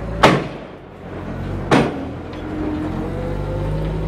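A forklift engine hums and whines nearby as it works.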